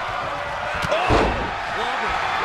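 A body slams onto a ring mat with a heavy thud.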